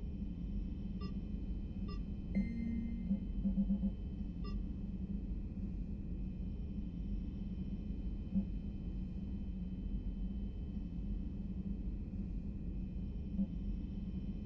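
Short electronic beeps sound as menu items are picked.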